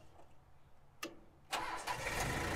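A key clicks as it turns in an ignition switch.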